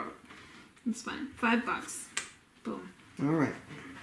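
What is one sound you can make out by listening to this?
Small tokens click onto a tabletop.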